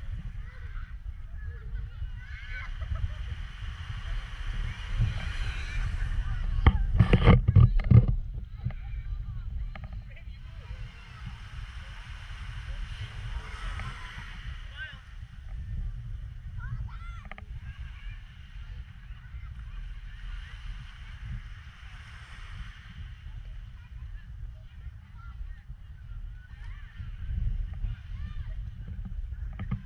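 Wind blusters across a microphone outdoors.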